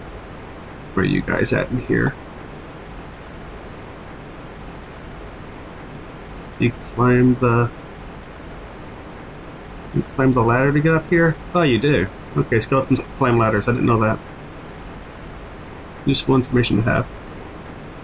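A middle-aged man talks casually into a close microphone, in short bursts.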